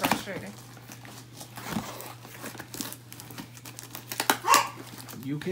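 Stiff paper crinkles and rustles.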